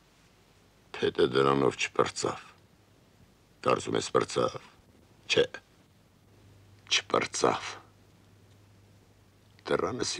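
A middle-aged man speaks slowly in a low, calm voice, with pauses.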